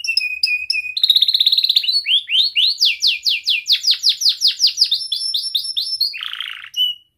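A canary sings close by in a long run of quick trills, sweeping whistles and chirps.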